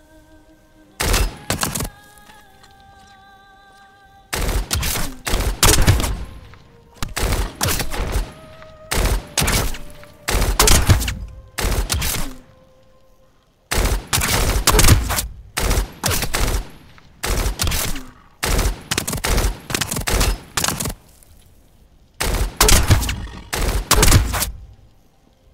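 Gunfire rattles in short, loud bursts.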